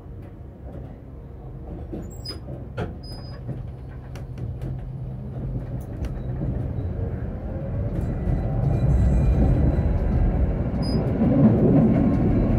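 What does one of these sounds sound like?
A tram hums and rumbles along its rails, growing louder as it speeds up.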